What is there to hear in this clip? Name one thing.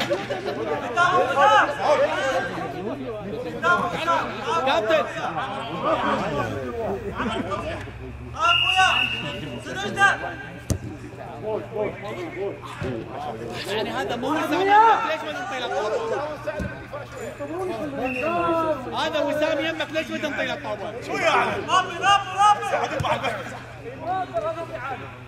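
Men shout and call out to each other across a field outdoors.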